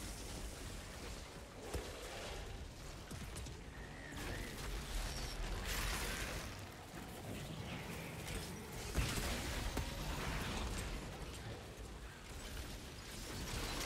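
Creatures screech and snarl.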